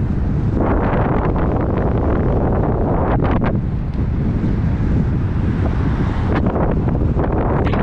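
Wind rumbles loudly against the microphone of a moving bike.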